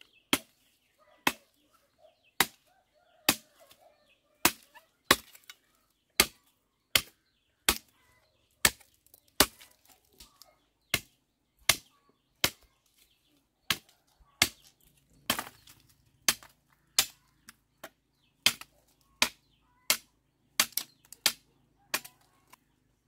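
A machete chops into bamboo with sharp, regular knocks.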